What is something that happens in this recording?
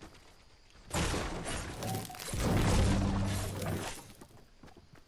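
A pickaxe strikes wood with loud cracking thuds.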